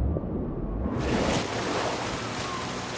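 Water splashes as a body breaks the surface.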